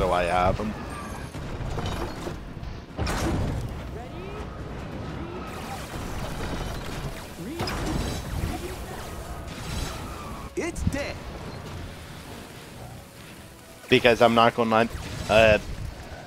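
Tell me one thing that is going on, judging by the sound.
Energy bolts zap and crackle as defence towers fire.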